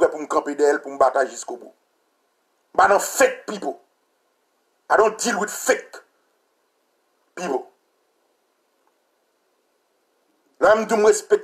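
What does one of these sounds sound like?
A man speaks calmly in short bursts close to the microphone.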